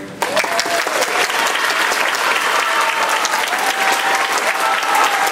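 A student string orchestra plays in a large hall.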